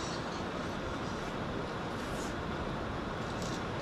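A young woman slurps noodles close by.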